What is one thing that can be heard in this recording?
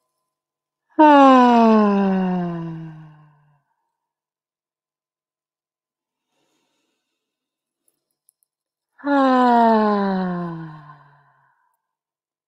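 A young woman sings long, falling notes over an online call.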